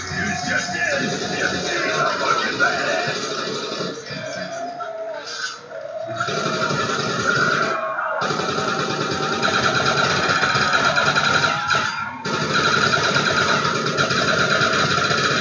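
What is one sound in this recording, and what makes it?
Automatic gunfire rattles in a video game.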